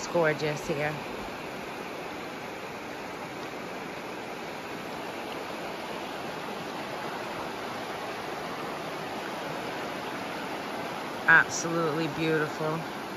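A shallow river rushes and burbles over rocks.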